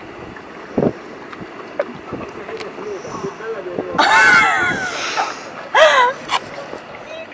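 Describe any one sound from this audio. A young woman gasps and squeals at cold water.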